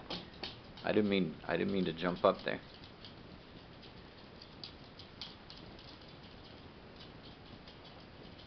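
Dogs' claws click and patter on a wooden floor.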